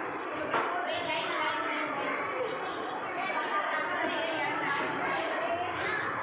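A crowd of young children chatter and shout in a large echoing hall.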